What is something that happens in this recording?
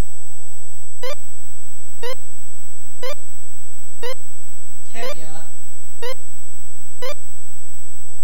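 Electronic game beeps tick once a second as a timer counts down.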